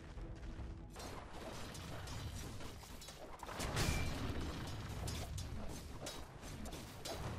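Blows and impacts thud in quick succession.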